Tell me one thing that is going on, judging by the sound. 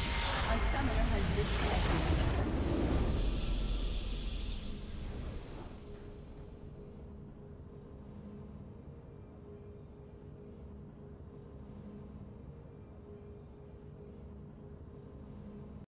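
A triumphant game fanfare swells and then fades into soft ambient music.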